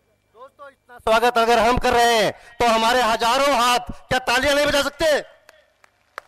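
A man speaks loudly through a loudspeaker outdoors.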